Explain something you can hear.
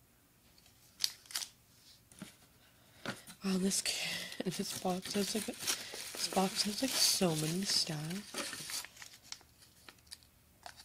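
Cardboard and paper rustle as a hand reaches into a box.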